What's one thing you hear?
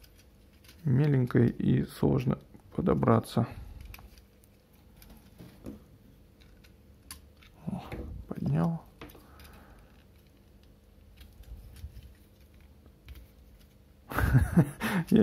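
Small plastic toy parts click and snap as they are turned and folded.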